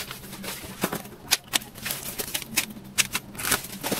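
Leaves and stems rustle and rip as weeds are pulled by hand.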